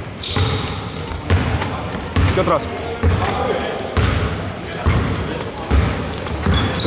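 A basketball bounces with dull thumps on a wooden floor in an echoing hall.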